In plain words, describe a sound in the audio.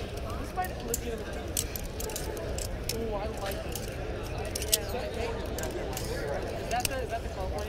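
A metal folding knife clicks and clacks as it is flipped open and shut.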